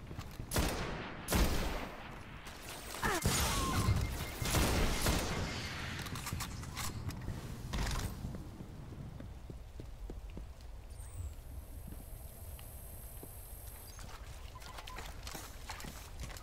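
Gunshots fire in rapid bursts with loud blasts.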